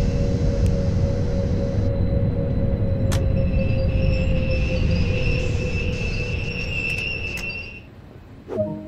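A train rumbles along the rails and slows down.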